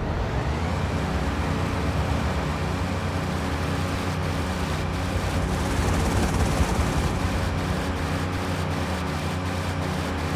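Water splashes and churns behind a speeding boat.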